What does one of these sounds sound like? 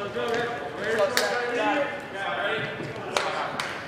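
Players call out to each other in a large echoing gym.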